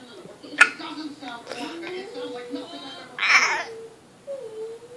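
A toddler giggles and squeals close by.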